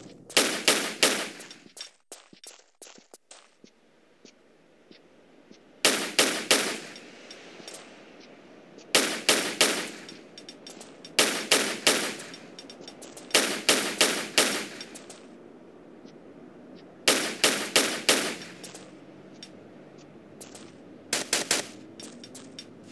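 Twin pistols fire in rapid bursts of gunshots.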